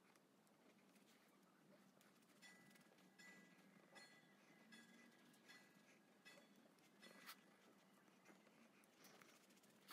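A makeup sponge pats softly against skin.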